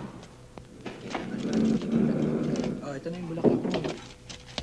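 A glass door opens and closes.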